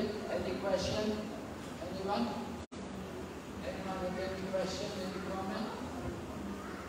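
An elderly man speaks calmly through a microphone in an echoing room.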